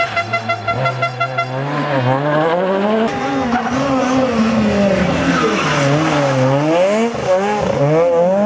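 A rally car engine roars close by, its revs rising and falling sharply through gear changes.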